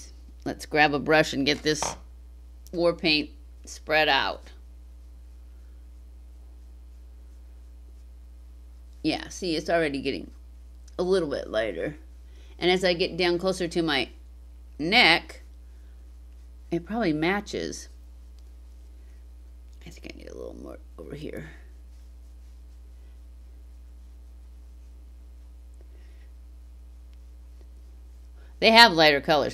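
An older woman talks calmly and close to a microphone, with pauses.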